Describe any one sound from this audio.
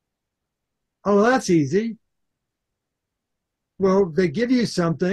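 An elderly man speaks calmly through a microphone on an online call.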